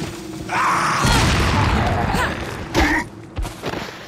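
A man grunts and groans while struggling.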